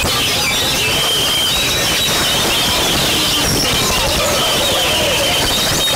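A songbird sings close by in clear, warbling whistles.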